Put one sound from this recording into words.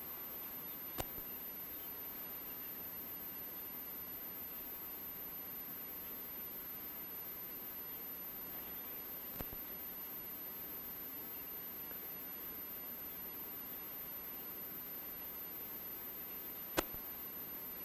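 A metal cup knocks lightly on a table.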